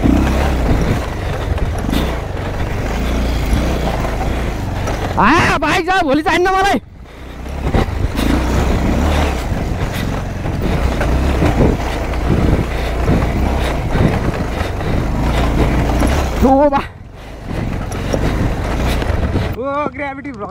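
A motorcycle engine rumbles as the bike rides at low speed along a dirt trail.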